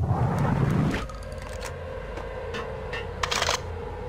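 A pump-action shotgun clicks and clacks.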